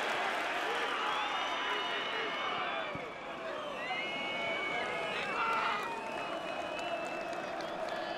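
Fans whistle loudly in a stadium crowd.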